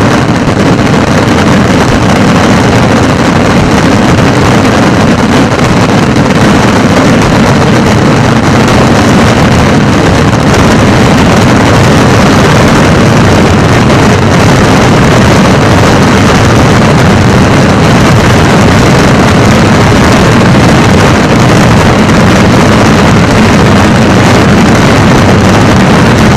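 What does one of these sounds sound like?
Firecrackers burst in a dense, rapid crackling barrage overhead.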